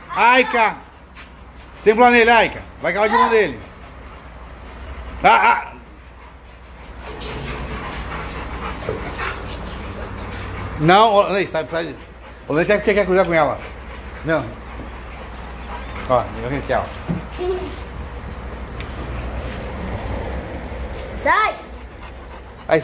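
Dogs whine and yelp excitedly close by.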